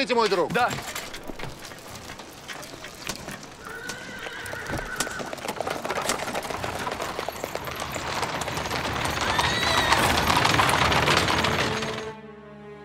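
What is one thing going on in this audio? Horse hooves clop on a paved street.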